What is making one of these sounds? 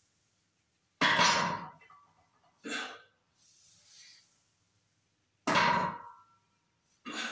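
Weight plates on a barbell clank down onto a wooden floor, ringing briefly.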